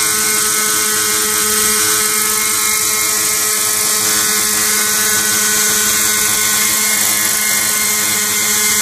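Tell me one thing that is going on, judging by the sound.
A model helicopter's motor whines loudly and steadily close by.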